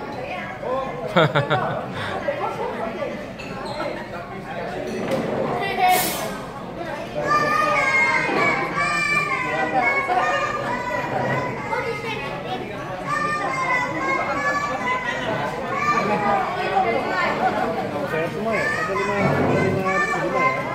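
Diners chatter in a large room.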